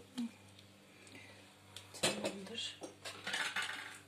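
A metal lid clatters onto a pot.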